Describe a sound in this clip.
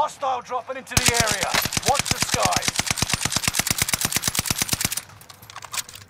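A rifle fires in a rapid string of shots.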